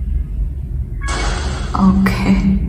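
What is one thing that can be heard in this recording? A short cartoon blast bursts out with a puff.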